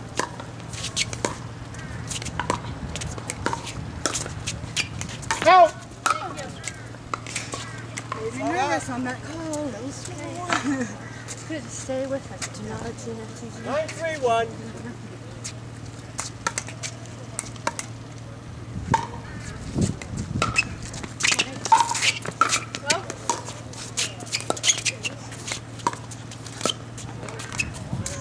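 Paddles pop against a plastic ball in quick, sharp knocks.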